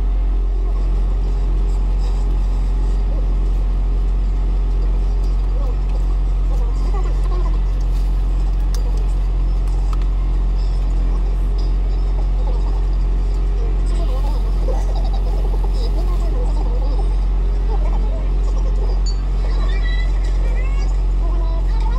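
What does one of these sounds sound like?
A man chews food with his mouth open.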